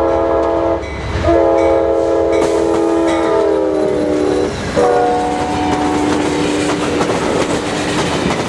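A passenger train rumbles past close by, wheels clattering on the rails.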